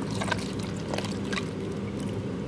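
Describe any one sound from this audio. Ice cubes clatter into a plastic blender jar.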